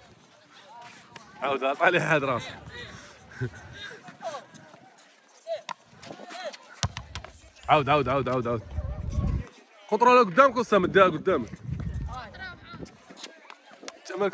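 A ball thuds as it is kicked and bounces on a hard court.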